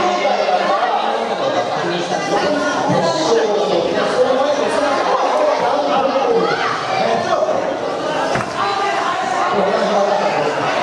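A man talks with animation over a loudspeaker in a large echoing hall.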